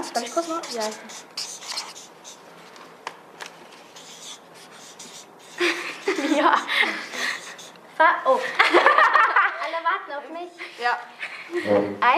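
A teenage girl speaks with animation close by.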